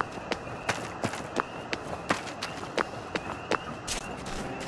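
Footsteps tread through grass at a steady pace.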